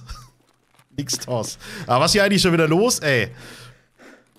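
A man laughs into a close microphone.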